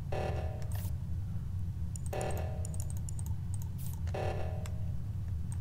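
Electronic keypad tones beep as buttons are pressed.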